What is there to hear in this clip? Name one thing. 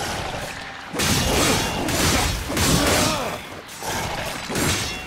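Ice cracks and shatters.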